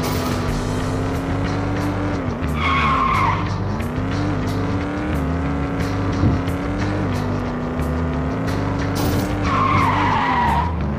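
A car engine hums steadily and revs up and down.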